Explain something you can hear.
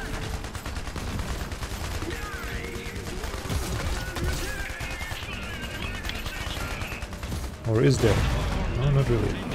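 Guns fire in rapid, rattling bursts.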